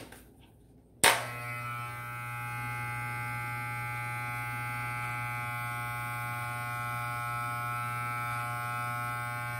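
Electric hair clippers click on and buzz steadily.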